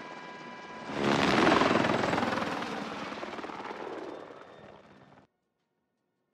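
A helicopter roars loudly overhead, then fades away.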